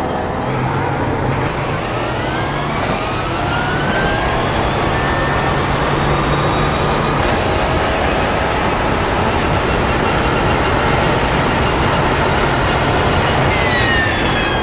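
A race car engine roars and climbs in pitch through quick gear changes.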